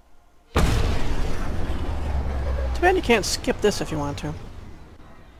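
A spaceship roars past with a deep rushing whoosh.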